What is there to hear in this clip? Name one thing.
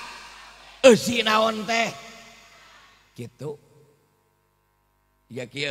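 A man speaks forcefully into a microphone, in bursts with pauses between them.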